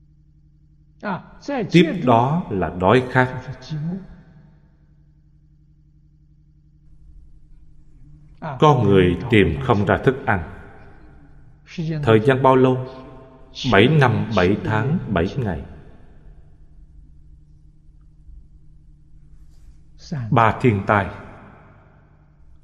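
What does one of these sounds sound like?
An elderly man speaks calmly and slowly into a close microphone, pausing between phrases.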